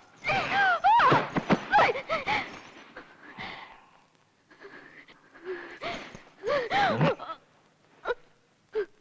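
A woman screams and sobs in distress.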